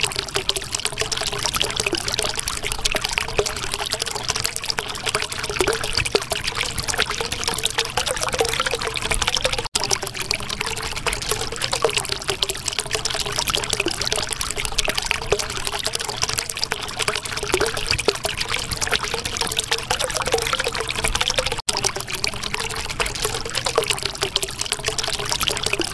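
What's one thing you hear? Water bubbles and gurgles steadily.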